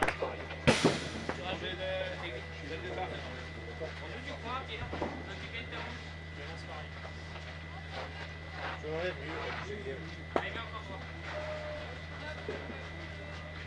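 Young men talk nearby outdoors.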